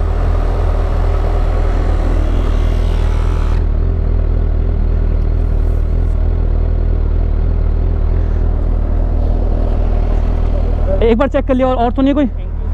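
A small electric air pump hums and buzzes steadily.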